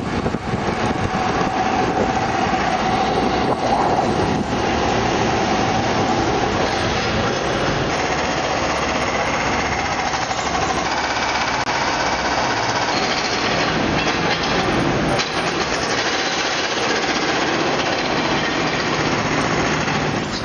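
Road traffic rumbles and hums along a busy street outdoors.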